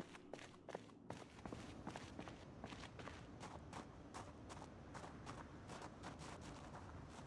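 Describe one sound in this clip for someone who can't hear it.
Footsteps patter quickly and steadily.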